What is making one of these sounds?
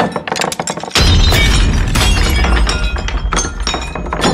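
A bowl falls and clatters on a wooden floor.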